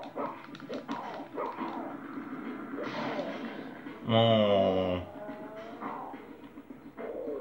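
Video game sounds play from a small speaker.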